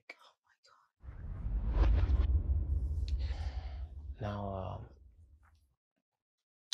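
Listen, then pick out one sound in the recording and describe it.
A young woman sobs loudly.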